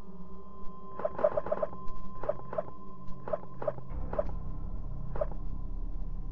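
Short soft chimes sound as a menu selection changes.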